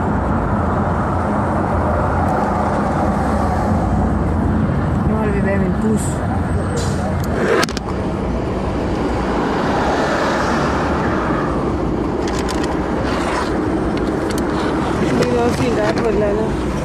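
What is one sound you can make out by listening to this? A car engine hums steadily, with road rumble heard from inside the car.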